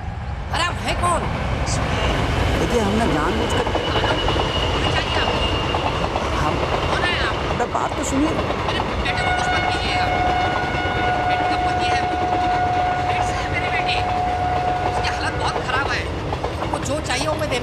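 An elderly man speaks into a phone.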